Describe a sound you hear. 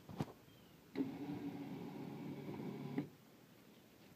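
A small engine's starter whirs and cranks without catching.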